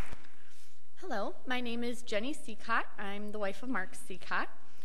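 A woman speaks calmly through a microphone.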